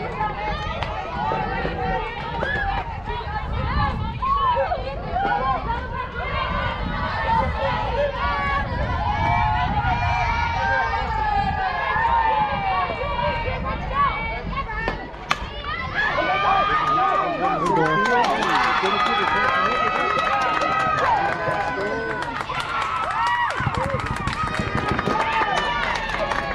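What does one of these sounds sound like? Young women call out and chant throughout, nearby and outdoors.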